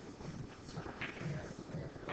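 Pool balls click sharply against each other.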